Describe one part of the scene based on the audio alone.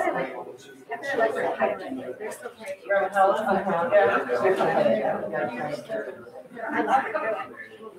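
Several adults talk and chatter nearby in a room with a slight echo.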